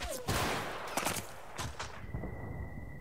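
Gunfire and blasts crack loudly nearby.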